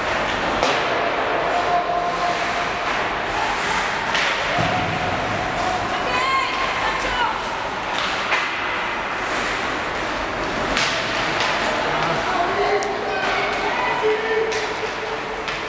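Hockey sticks clack against a puck on ice.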